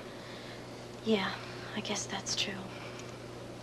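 A woman speaks softly nearby.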